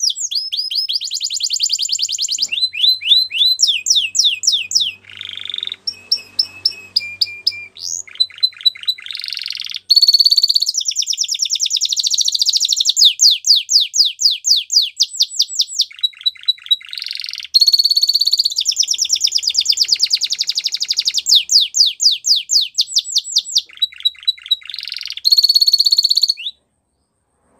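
A canary sings loud, rapid trills and chirps close by.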